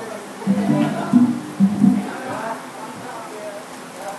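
Bamboo poles knock together in a rhythm.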